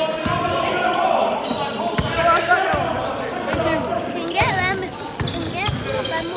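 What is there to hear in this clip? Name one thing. A basketball bounces with dull thuds on a hard floor.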